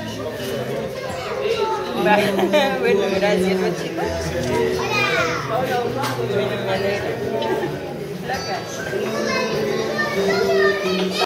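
A middle-aged man talks nearby.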